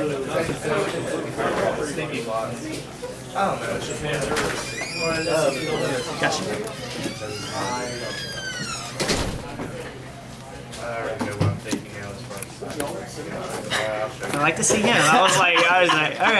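Playing cards shuffle and slide on a soft mat.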